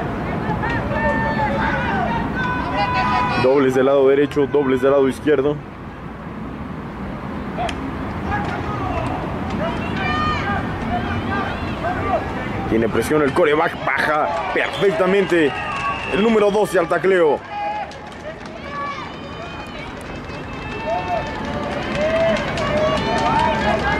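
Players shout and call out across an open field.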